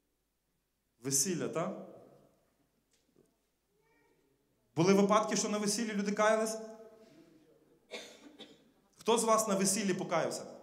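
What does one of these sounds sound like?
A man speaks through a microphone in a large echoing hall, pausing between phrases.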